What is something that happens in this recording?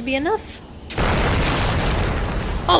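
A loud explosion roars.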